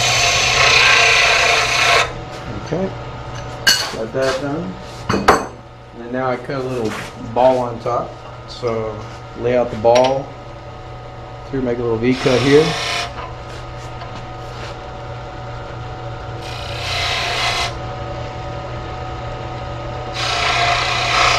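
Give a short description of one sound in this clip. A chisel scrapes loudly against spinning wood.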